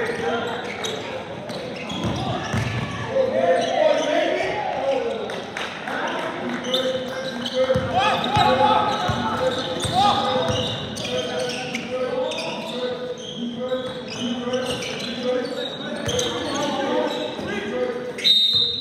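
Young men shout and call out across the court.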